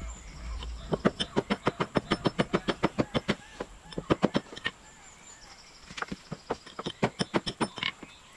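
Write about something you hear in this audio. A hand tool scrapes and chips at rotten wood in quick, rapid strokes.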